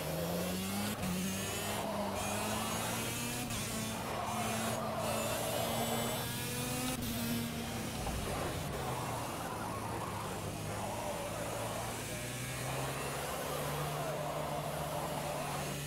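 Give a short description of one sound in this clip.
Kart tyres hum and hiss on tarmac.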